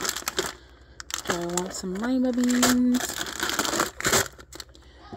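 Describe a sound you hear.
Plastic packages rustle and crinkle close by.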